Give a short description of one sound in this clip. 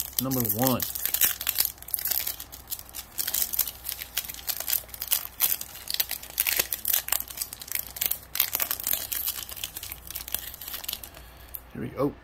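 A foil wrapper crinkles and tears open.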